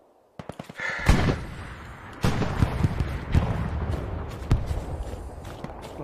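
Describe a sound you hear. Rifle shots boom loudly nearby.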